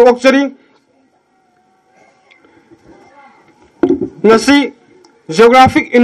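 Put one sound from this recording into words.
A young man speaks formally into a microphone over a loudspeaker, with pauses.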